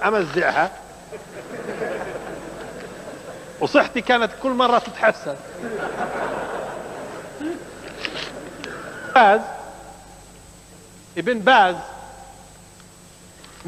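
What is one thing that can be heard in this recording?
A crowd murmurs and chatters quietly.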